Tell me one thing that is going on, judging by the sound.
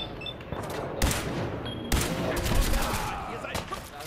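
Gunshots fire loudly in quick bursts.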